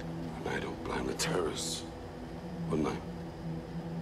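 A man speaks calmly in a low voice.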